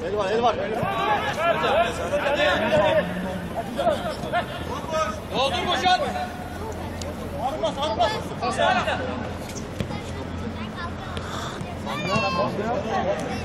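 Young men shout and call out to each other across an open outdoor pitch.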